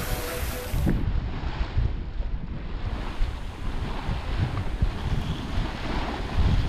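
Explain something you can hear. Waves splash and rush against a boat's hull.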